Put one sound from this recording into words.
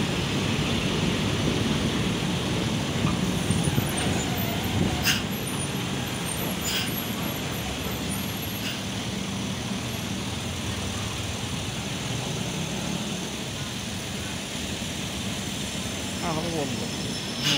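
Traffic rumbles steadily along a busy road outdoors.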